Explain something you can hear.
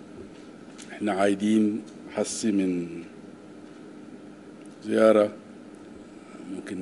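A man speaks slowly and deliberately into microphones, in short phrases with pauses.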